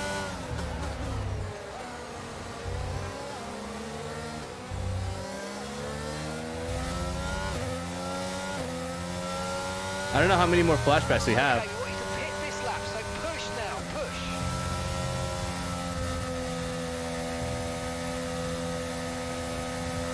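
A racing car engine whines steadily, rising and falling in pitch as it shifts gears.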